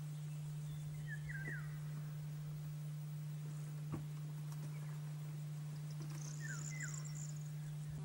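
A bird sings short, sliding whistled phrases nearby.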